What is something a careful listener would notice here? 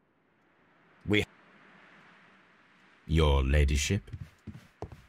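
A man speaks calmly and up close.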